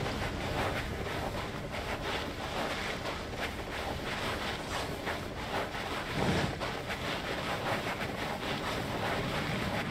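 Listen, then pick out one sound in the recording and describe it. Electric whooshes and crackles swirl over and over.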